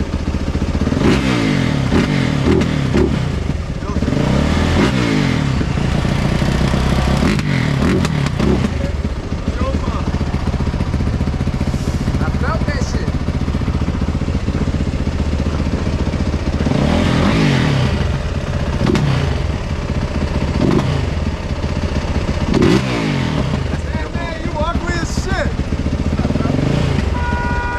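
An engine idles close by and revs up and down again and again.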